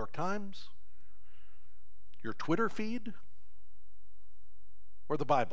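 An older man speaks with animation through a microphone, pausing between phrases.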